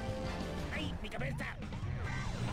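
A car crashes into another car with a loud thud.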